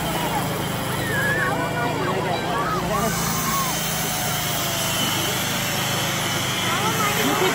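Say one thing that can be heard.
Children shout and squeal in a crowd.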